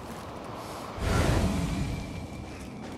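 A body lands with a heavy, rumbling thud.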